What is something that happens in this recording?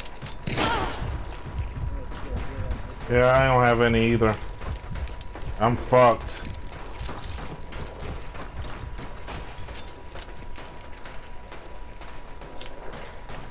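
Footsteps thud on a tin roof.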